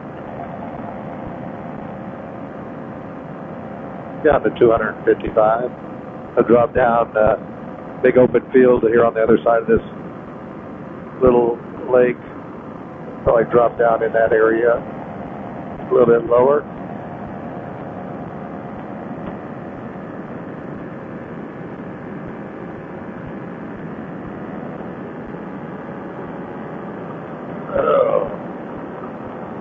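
A paramotor engine drones in flight.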